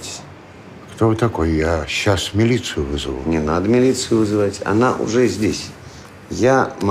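A middle-aged man speaks earnestly, close by.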